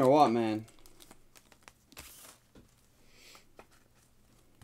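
A foil card pack crinkles and tears as it is opened.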